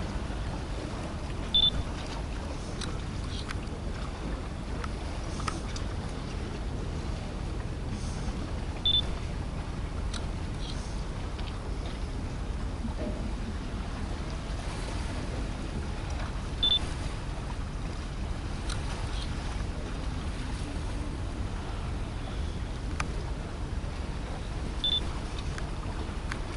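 A large ship's engines rumble low and steadily across the water.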